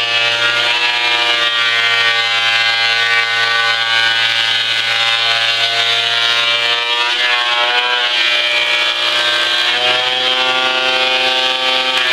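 A thickness planer whines loudly and steadily, its pitch dipping as wood is fed through.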